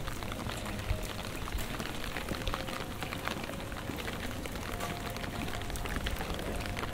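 Light rain patters on wet pavement outdoors.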